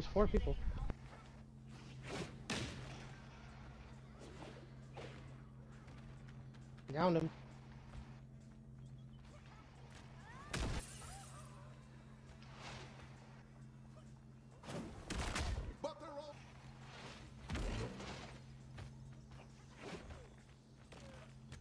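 Heavy punches and blows thump in a brawling game.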